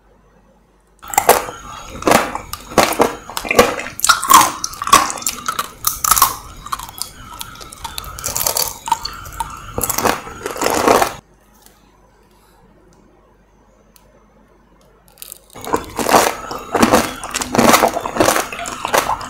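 A woman bites into juicy fruit close to a microphone.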